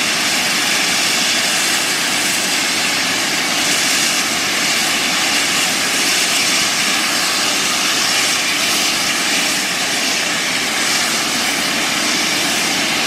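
A steam locomotive hisses loudly as it releases steam.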